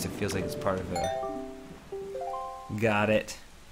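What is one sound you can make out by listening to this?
A bright chime jingle rises in quick notes.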